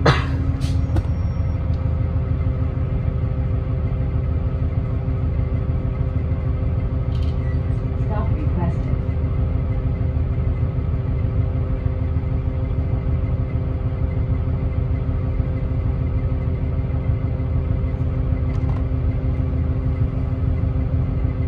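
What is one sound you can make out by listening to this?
The bus rattles gently as it rolls along the street.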